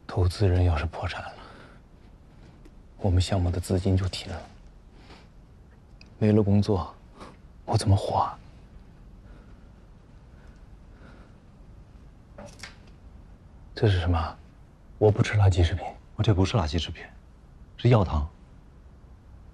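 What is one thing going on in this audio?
A man speaks tensely nearby, in short bursts.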